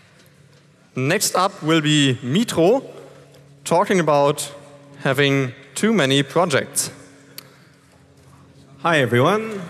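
A second man speaks into a microphone, amplified over loudspeakers.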